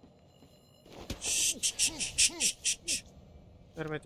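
Quick blows thud and smack in a fight.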